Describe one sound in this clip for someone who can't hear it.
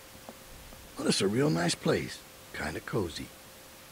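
A man speaks calmly and casually, close by.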